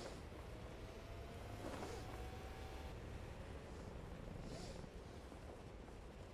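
Wind rushes steadily past a parachute.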